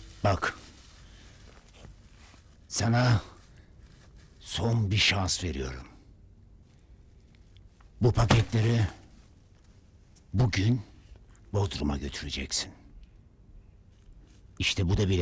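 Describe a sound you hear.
A man speaks in short, low phrases close by, with pauses between them.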